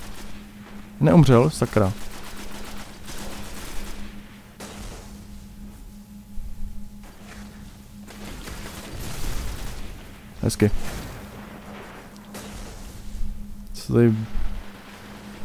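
A young man speaks in short bursts into a nearby microphone.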